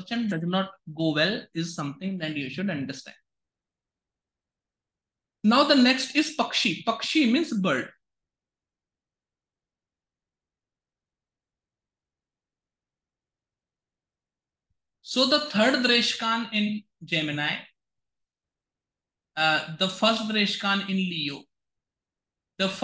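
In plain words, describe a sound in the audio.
A man speaks calmly into a microphone, explaining in bursts with pauses.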